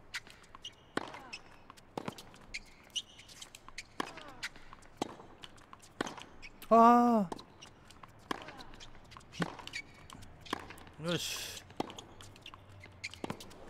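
A tennis ball is struck back and forth with rackets, in sharp pops.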